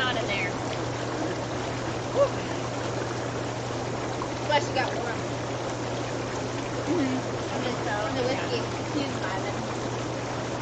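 Young women talk and laugh casually nearby.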